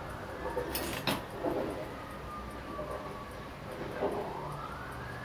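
Small metal tools click and scrape against a watch's parts.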